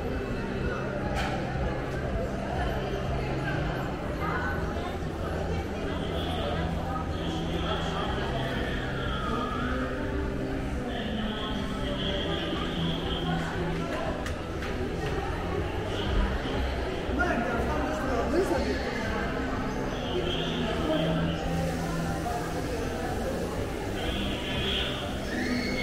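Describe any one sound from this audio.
A murmur of distant voices and bustle echoes through a large indoor hall.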